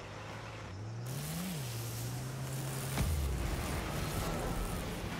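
A video game car's rocket boost roars.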